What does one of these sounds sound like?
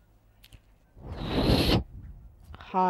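A figure lands heavily on a rooftop with a thud.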